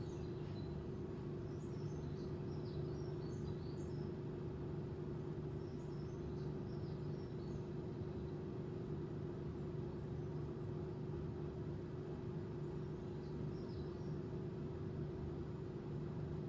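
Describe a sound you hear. A dog breathes softly while dozing.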